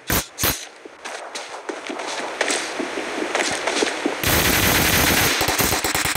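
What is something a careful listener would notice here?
Footsteps run over gravel.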